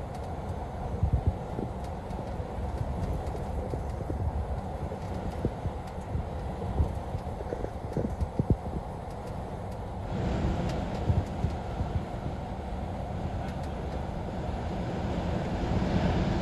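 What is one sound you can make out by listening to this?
A windscreen wiper sweeps across a wet windscreen.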